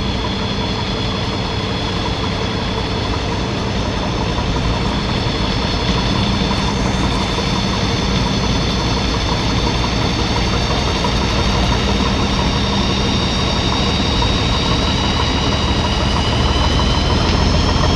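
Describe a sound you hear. A hydraulic whine rises and falls as an excavator arm moves.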